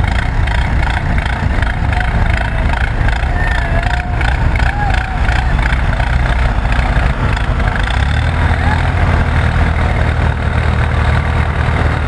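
A tractor engine rumbles steadily outdoors.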